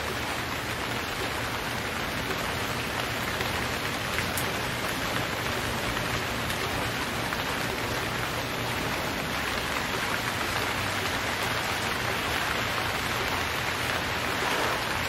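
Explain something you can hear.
Waves wash and lap around a small boat.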